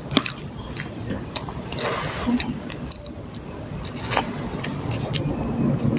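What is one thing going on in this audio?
Food crinkles and taps on a plate as a boy handles it.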